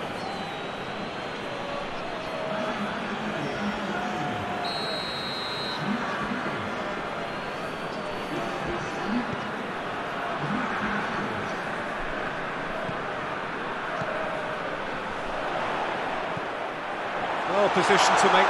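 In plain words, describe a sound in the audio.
A large stadium crowd roars steadily, swelling louder near the end.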